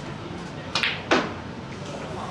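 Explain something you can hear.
Snooker balls knock together with a crisp clack.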